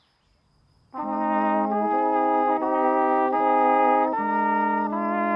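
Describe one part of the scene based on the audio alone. A small brass group plays a slow, sustained tune outdoors.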